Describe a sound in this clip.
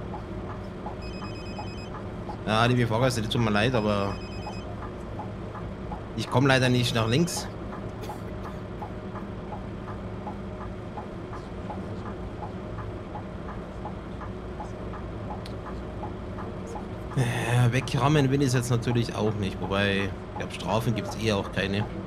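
A bus engine hums steadily at idle.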